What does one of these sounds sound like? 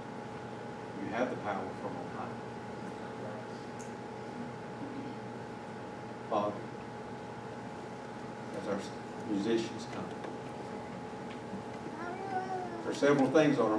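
A man speaks calmly into a microphone in an echoing room, with long pauses.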